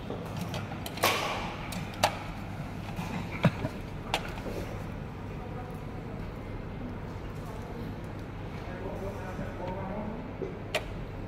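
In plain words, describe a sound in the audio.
Hands knock and click against metal parts.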